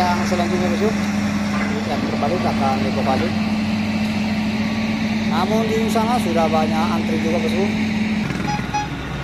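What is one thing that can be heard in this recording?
An excavator engine rumbles steadily nearby.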